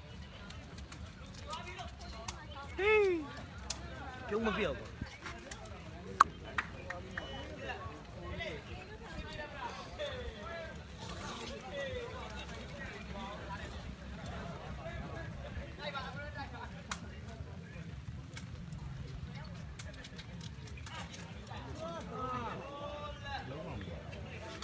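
A crowd of spectators chatters and shouts outdoors.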